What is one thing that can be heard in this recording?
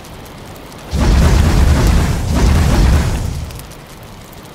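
A fire flares up with a loud whoosh.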